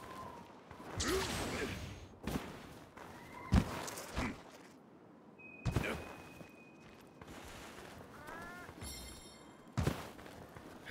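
A sword swings and slashes with sharp whooshes.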